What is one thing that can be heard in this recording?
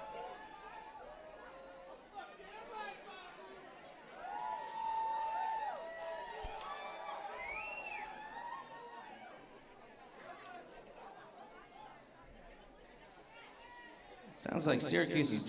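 A crowd chatters and calls out in a large hall.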